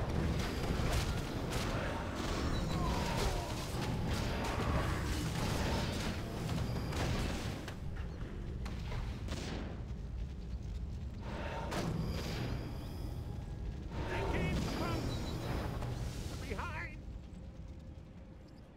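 Fantasy battle sounds clash with weapon hits and spell blasts.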